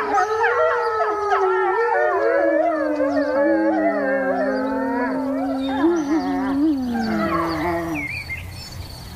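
Several wolves howl together in long, wavering, overlapping calls, then the howling stops.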